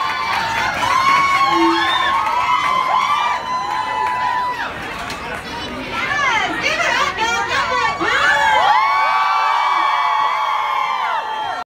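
A large crowd cheers and whoops loudly outdoors.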